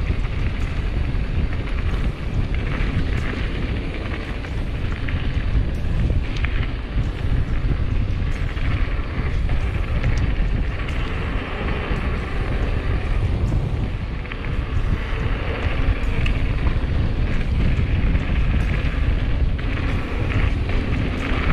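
A bicycle frame clatters and rattles over bumps.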